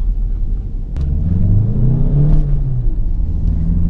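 A car engine revs up and settles.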